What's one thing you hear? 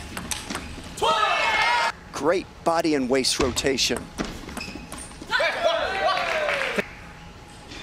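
Young players shout loudly in celebration after points.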